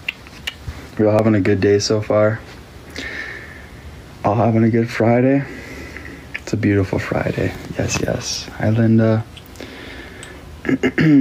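A young man talks casually and close up, heard through a phone's microphone.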